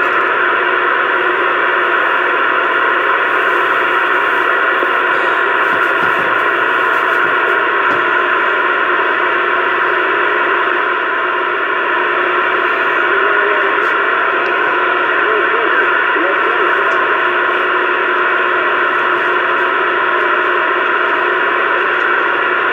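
A CB radio speaker hisses with static.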